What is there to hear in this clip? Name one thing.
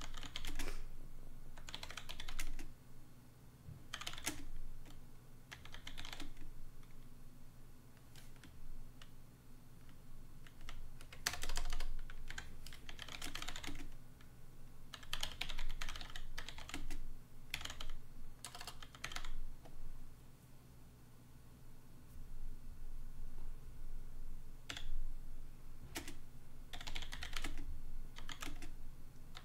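A keyboard clicks as someone types.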